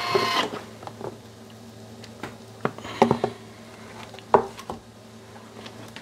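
A plastic lid clatters as it is lifted off a kitchen machine.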